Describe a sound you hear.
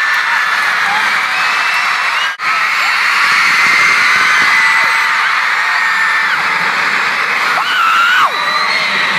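Loud music plays over big loudspeakers in a large echoing hall.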